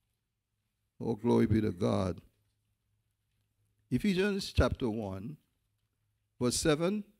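A man speaks slowly and emphatically into a microphone, with pauses between phrases.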